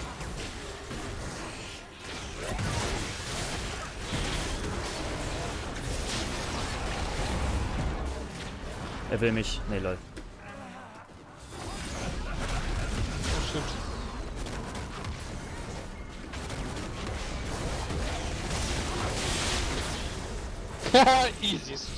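Video game spell effects whoosh, crackle and clash during a fight.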